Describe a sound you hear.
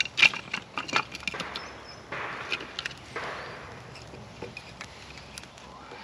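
Wooden sticks clatter as they are dropped onto a fire.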